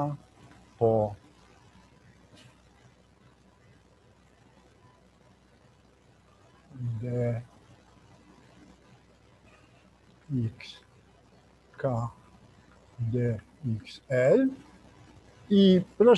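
An elderly man speaks calmly through a microphone, in short phrases with pauses.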